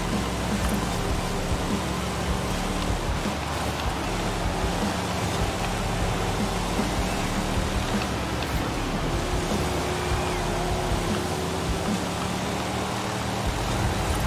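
A car engine roars steadily, shifting pitch as it accelerates.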